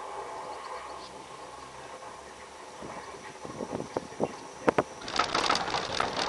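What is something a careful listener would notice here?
A cable car hums and creaks as it glides along its cable.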